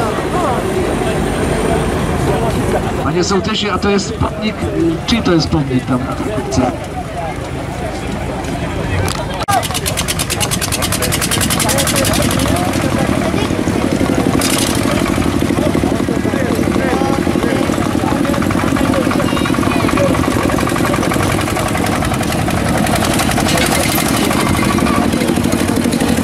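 A crowd of spectators chatters outdoors.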